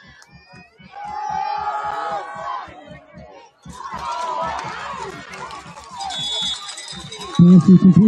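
A crowd cheers and shouts from the stands outdoors.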